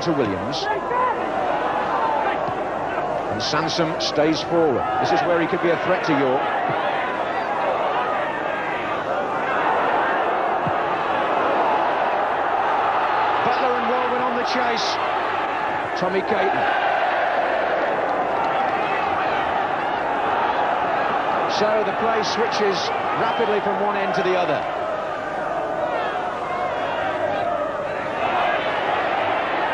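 A large crowd roars and chants in an outdoor stadium.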